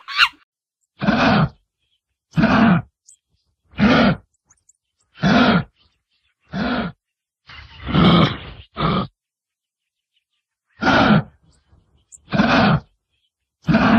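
A kangaroo gives deep, rasping grunts at a steady pace.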